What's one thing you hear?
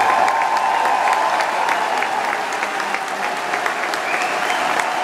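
A crowd applauds and cheers loudly in a large hall.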